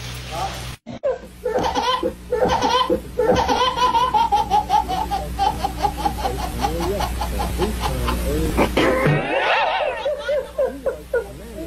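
A baby cries loudly and wails close by.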